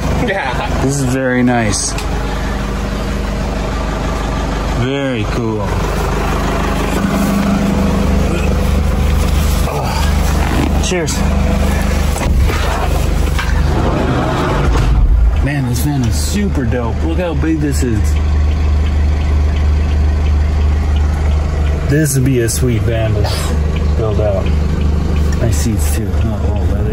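A man talks casually, close to the microphone.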